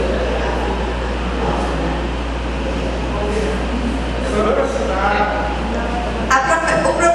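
A young woman speaks into a microphone over a loudspeaker in an echoing hall.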